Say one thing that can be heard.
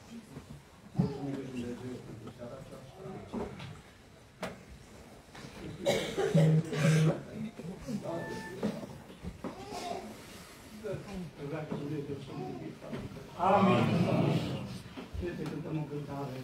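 A saxophone plays a slow, mournful melody in an echoing room.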